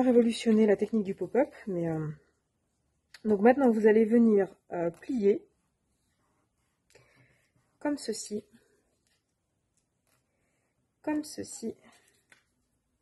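Paper rustles softly as hands fold and slide it.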